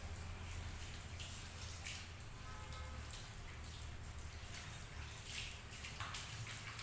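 Water sprays steadily from a shower head onto hair.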